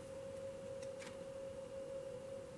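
A card is laid softly on a cloth.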